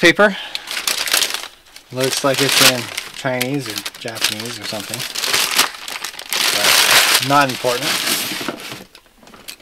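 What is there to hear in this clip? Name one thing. Paper wrapping crinkles and rustles as hands tear at it.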